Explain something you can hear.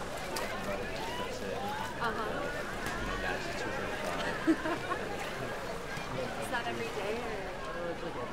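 Young women chatter and laugh in an echoing indoor pool.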